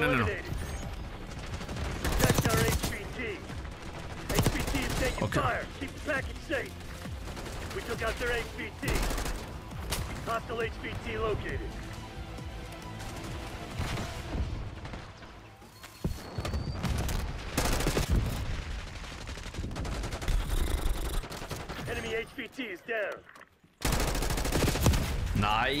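Gunfire bursts out in rapid volleys.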